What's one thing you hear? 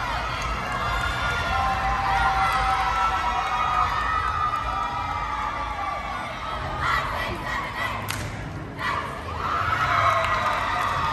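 A crowd cheers and screams loudly in a large echoing hall.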